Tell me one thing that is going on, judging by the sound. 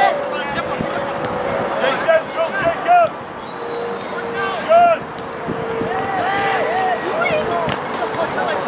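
Young players call out to each other across an open field in the distance.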